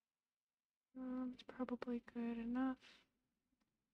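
A young woman speaks briefly and calmly into a nearby microphone.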